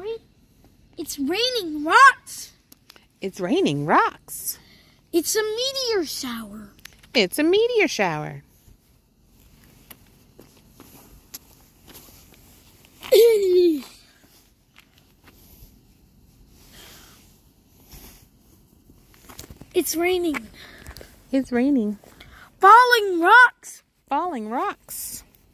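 A young boy talks with animation close to the microphone.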